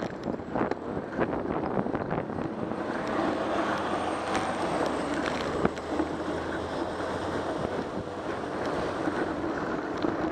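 A city bus engine rumbles close by as it passes.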